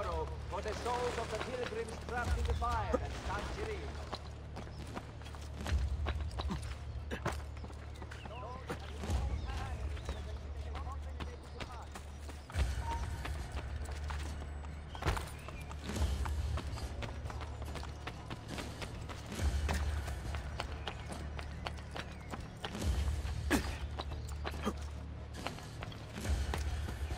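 Footsteps patter and thud on roof tiles.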